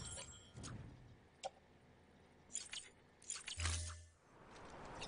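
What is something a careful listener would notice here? Menu sounds click and beep sharply.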